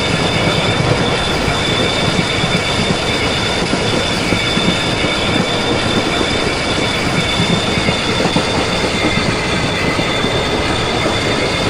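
A train's motor hums with a steady whine.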